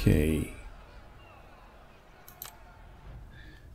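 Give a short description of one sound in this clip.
A game menu button clicks.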